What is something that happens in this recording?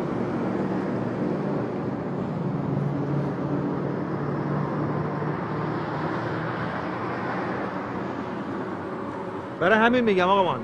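Traffic rumbles steadily past on a nearby road.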